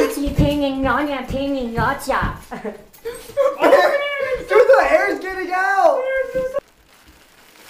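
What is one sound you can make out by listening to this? A young man shouts and sings excitedly close by.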